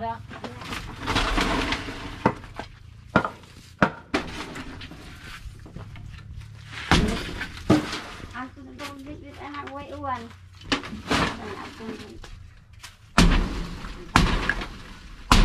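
Wooden posts knock and thud.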